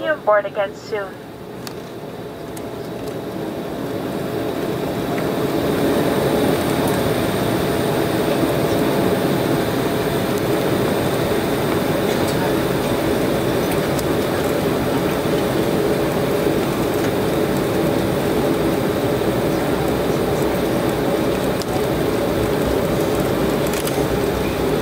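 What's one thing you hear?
Jet engines roar, swelling louder and then holding steady.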